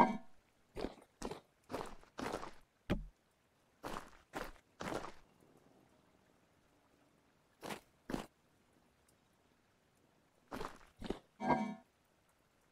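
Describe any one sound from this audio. Footsteps tread on hard stone.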